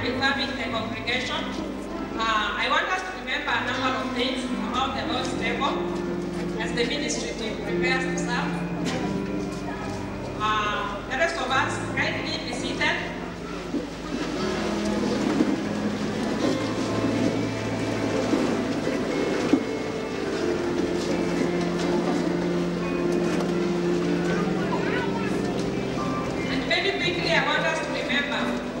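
A young woman speaks with feeling into a microphone, heard over loudspeakers.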